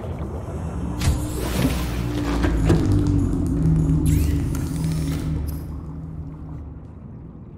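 A hatch door opens with a whoosh and a rush of water.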